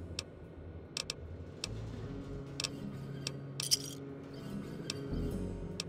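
Short interface clicks tick several times.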